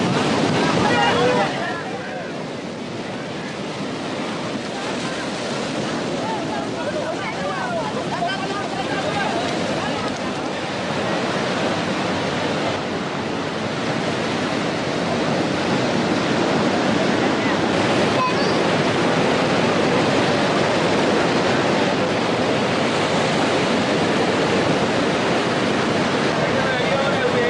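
Men shout and call out to each other nearby, outdoors.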